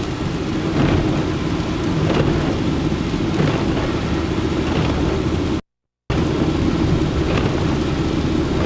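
Windscreen wipers swish across the glass at a steady beat.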